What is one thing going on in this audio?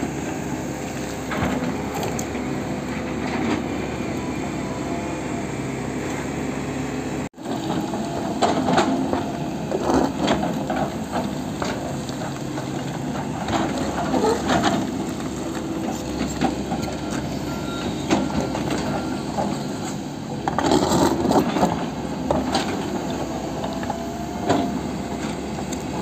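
An excavator bucket scrapes and digs into rocky soil.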